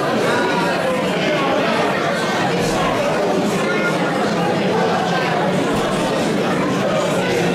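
A man speaks calmly into a microphone, heard through a loudspeaker in an echoing hall.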